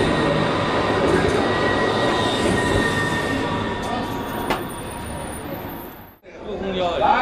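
A tram pulls away with a steady electric whine.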